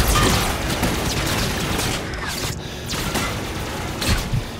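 Gunfire bursts loudly in a game.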